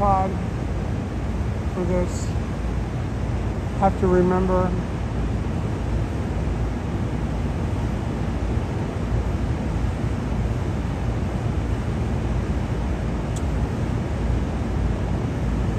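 Steam hisses steadily from a vent.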